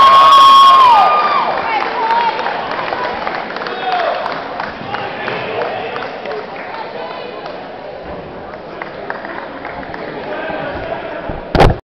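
Spectators murmur and chatter in the background of an echoing hall.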